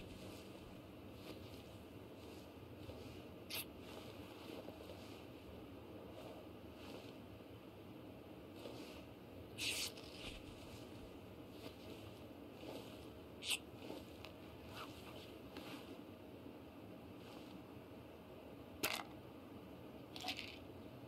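Grass rustles softly as someone crawls along the ground.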